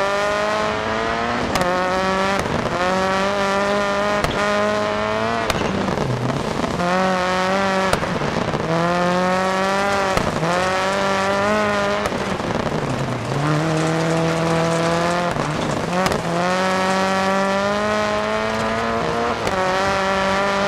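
A flat-four rally car engine revs hard and climbs through gear changes.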